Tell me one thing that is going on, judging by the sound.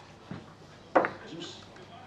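A cue tip strikes a billiard ball.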